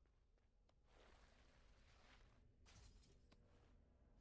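A sharp magical whoosh sweeps past as a figure dashes through the air.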